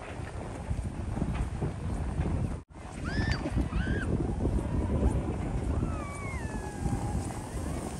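A sled slides over packed snow with a scraping hiss.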